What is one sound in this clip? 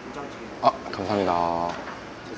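A young man speaks politely close by.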